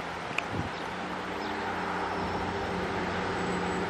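A distant train engine hums steadily as it approaches.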